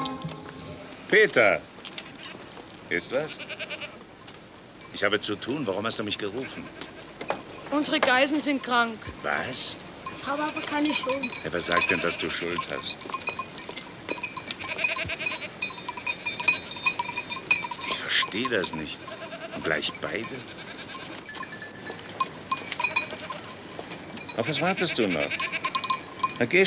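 Goats bleat nearby.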